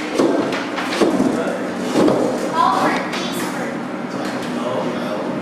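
Children and adults chatter nearby in an echoing room.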